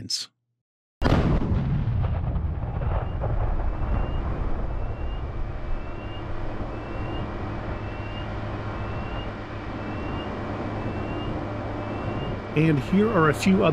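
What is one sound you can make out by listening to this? A distant explosion booms suddenly, then rumbles and slowly fades.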